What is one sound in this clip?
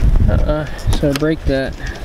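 A car door handle clicks as it is pulled.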